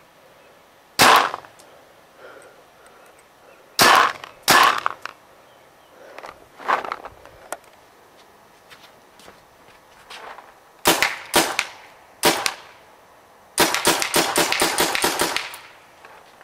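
A paintball gun fires sharp pops outdoors, first single shots and then a fast burst.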